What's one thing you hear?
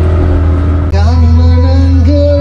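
A young man sings into a microphone through a loudspeaker.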